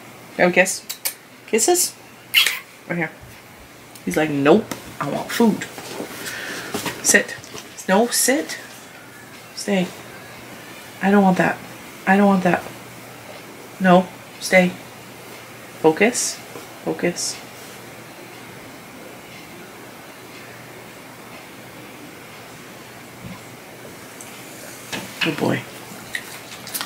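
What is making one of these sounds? A woman talks calmly and closely.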